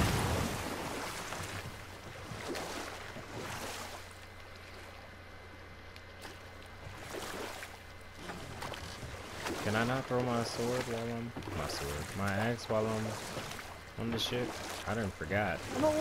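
Oars dip and swish through water.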